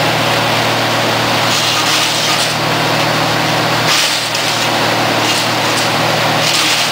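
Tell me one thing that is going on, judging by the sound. A wood chipper's engine runs loudly and steadily close by.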